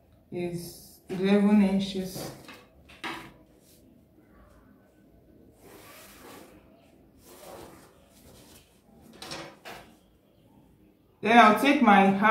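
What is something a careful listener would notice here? Fabric rustles softly as hands smooth it flat.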